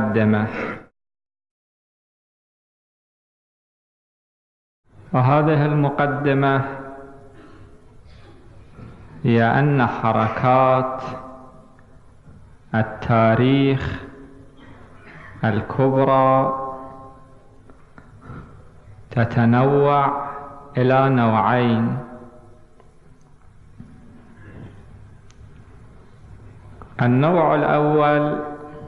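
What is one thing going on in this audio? A man speaks slowly and solemnly into a microphone, in short phrases with pauses, in an echoing hall.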